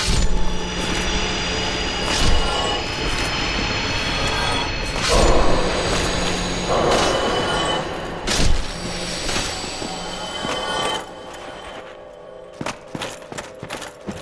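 Armoured footsteps crunch on gravel and clink.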